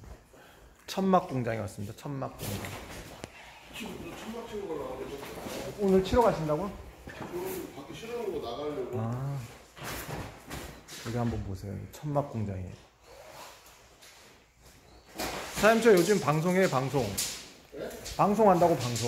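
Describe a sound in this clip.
A man talks calmly, close up.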